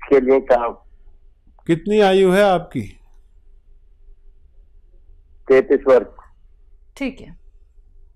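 A man speaks calmly into a microphone, close by, in short bursts with pauses.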